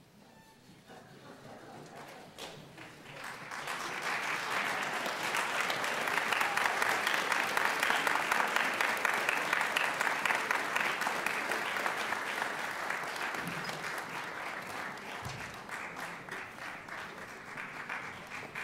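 An audience applauds in a large hall, swelling and then slowly easing off.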